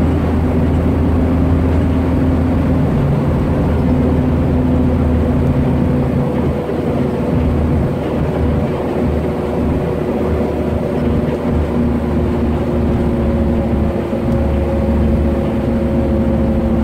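A bus engine hums steadily from inside the cabin.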